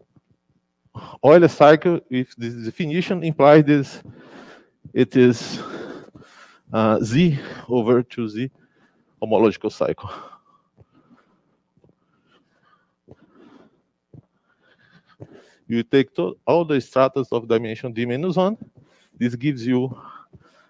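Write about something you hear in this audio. A man lectures calmly into a close microphone, in bursts with pauses.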